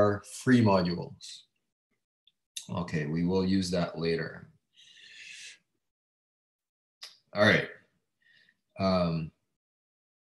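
A young man speaks calmly through a microphone, in short bursts with pauses.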